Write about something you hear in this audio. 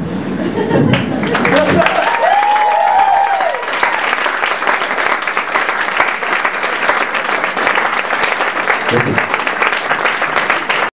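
An audience claps and applauds.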